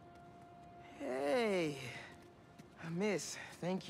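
A teenage girl speaks up close in a lively, teasing voice.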